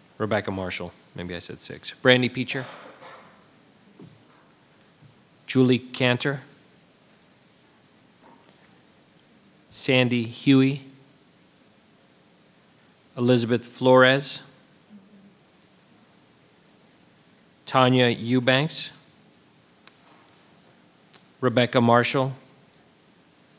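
A man speaks in short, spaced phrases through a microphone.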